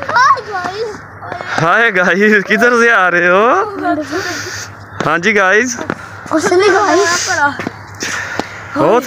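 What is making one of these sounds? A young girl talks and laughs excitedly close by.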